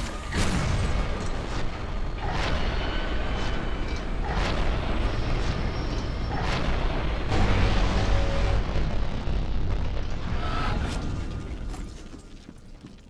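A scoped rifle fires loud shots.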